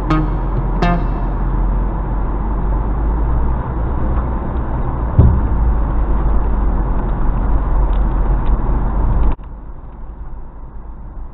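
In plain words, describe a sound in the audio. A vehicle engine rumbles low and steady, heard from inside the cab.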